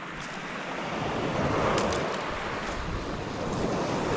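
Waves wash over a pebble shore.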